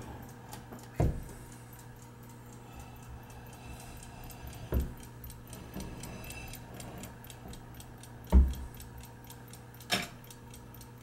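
Metal parts of an old lock click and clack as they are handled.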